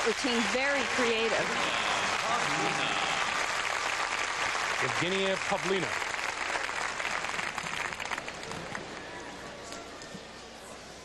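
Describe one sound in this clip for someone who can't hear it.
A large crowd applauds and cheers in a big echoing arena, slowly fading.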